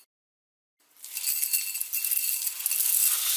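Dried seaweed rustles and patters as it is poured into a bowl.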